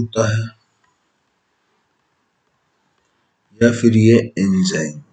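A man speaks calmly and explains into a close microphone.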